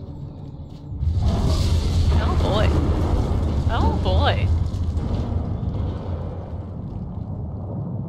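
Rocks tumble and crash with a deep rumble.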